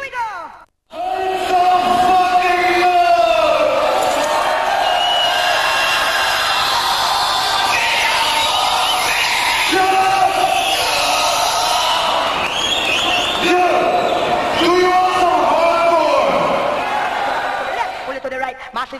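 A man shouts harshly into a microphone.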